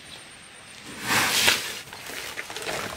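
Wood scraps clatter as they are tipped from a sack onto the ground.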